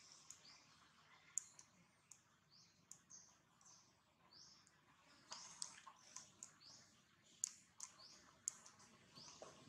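Dry leaves rustle and crackle as monkeys shift on the ground.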